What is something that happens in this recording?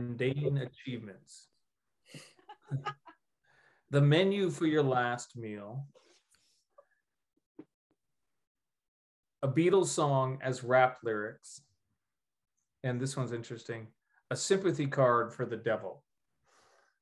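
A middle-aged man speaks calmly in bursts with pauses, heard through an online call.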